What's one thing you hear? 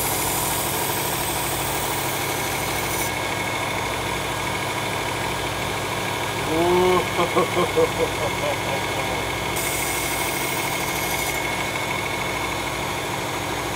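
A knife blade grinds against a sharpening belt.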